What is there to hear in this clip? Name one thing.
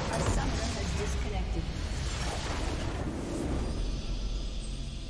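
A huge explosion booms and crackles.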